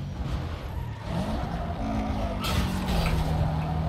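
Tyres screech as a car drifts through a turn.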